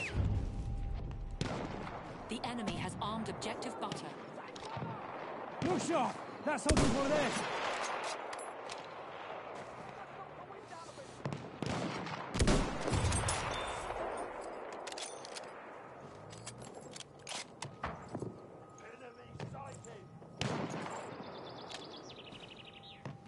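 Distant gunfire crackles in the background.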